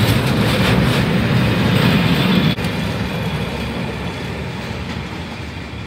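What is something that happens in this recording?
A freight train rumbles and clatters past up close, then fades into the distance.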